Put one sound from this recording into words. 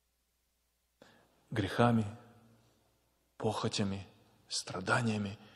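A man speaks through a microphone and loudspeakers in a large echoing hall, pausing between phrases.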